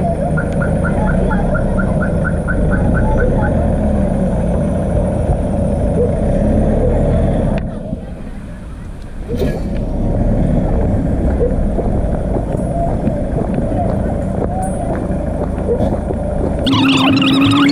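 A car engine rumbles as it drives slowly over a rough gravel road.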